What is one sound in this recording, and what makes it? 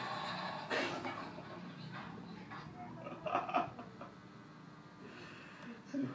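A teenage boy laughs nearby.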